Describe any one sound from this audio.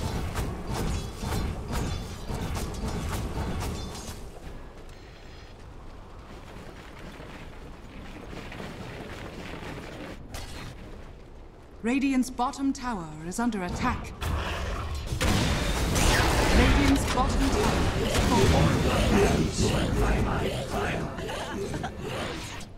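Weapons clash and spells crackle in a fast game battle.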